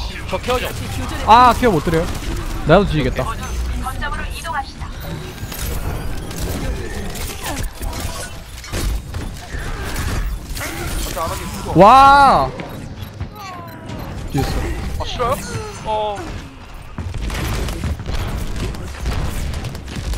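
Rapid gunfire and blasts crackle in a video game.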